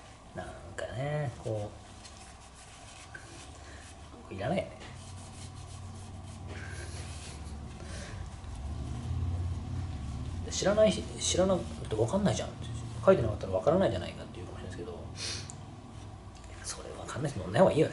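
A middle-aged man talks calmly up close.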